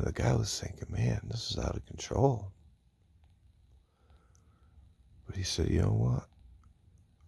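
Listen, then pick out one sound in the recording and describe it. A man speaks sleepily and groggily, very close.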